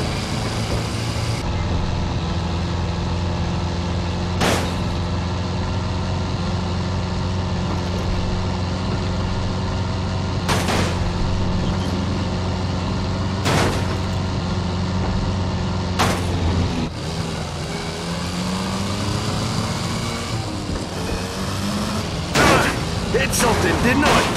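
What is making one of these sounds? Tyres rumble over cobblestones.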